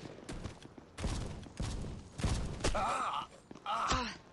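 Game gunfire cracks in quick bursts.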